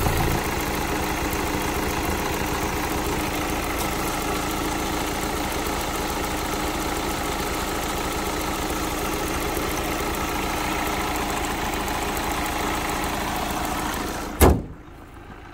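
A diesel engine idles with a steady, rattling hum.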